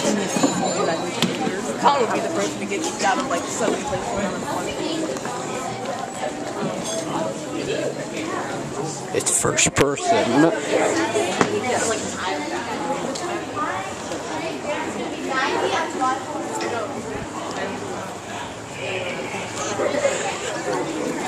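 A group of young people talk and chatter nearby as they walk.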